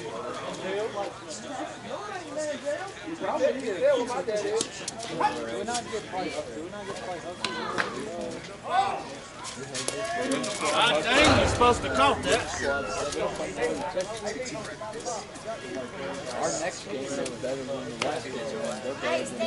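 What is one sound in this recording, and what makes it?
A bat hits a ball with a sharp crack.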